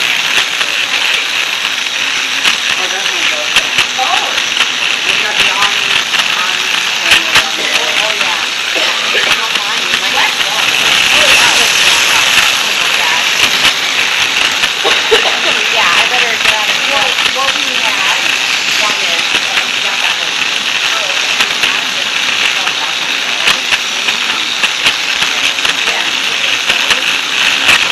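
A toy train motor whirs steadily nearby.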